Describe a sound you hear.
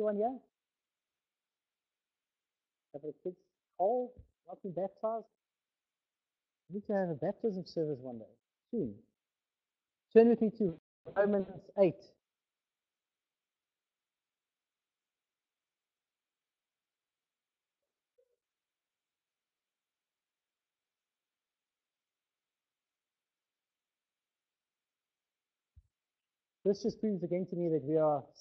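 A man speaks calmly into a microphone, pausing often.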